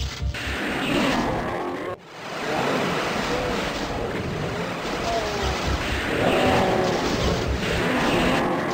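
An energy weapon fires with loud crackling blasts.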